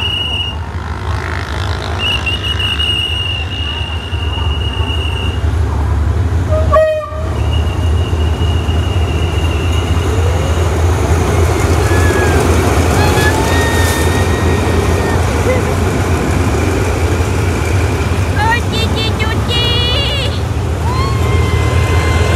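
A train rumbles closer and rolls past on the rails.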